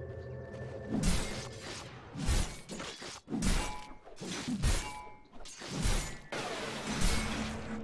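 Blows and spell effects crash and thud in a fight.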